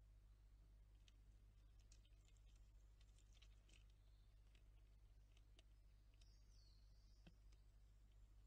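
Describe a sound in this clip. A squirrel cracks and nibbles seeds close by.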